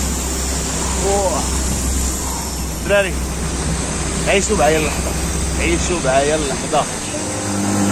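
A man talks excitedly and close by.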